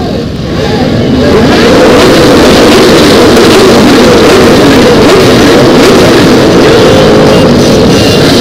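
Motorcycle engines rev loudly, rising and falling.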